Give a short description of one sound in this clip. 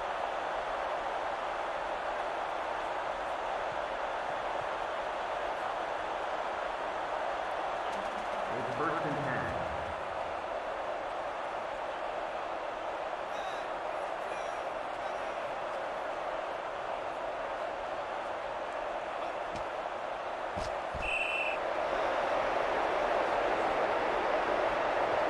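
A stadium crowd murmurs and roars in the distance.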